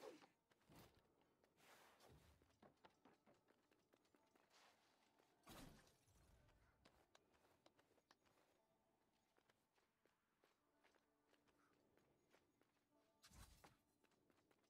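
Swords clash and whoosh in quick strikes.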